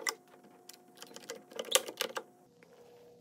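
A bar clamp clicks and knocks as it is tightened against wood.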